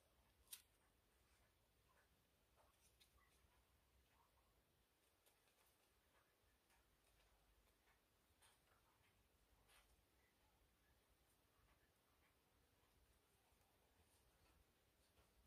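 A pair of scissors snips.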